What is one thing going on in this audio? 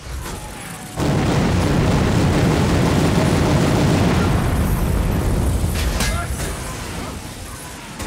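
A heavy explosion roars and rumbles.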